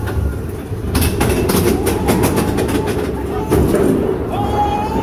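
A lift chain clanks rapidly as the train climbs.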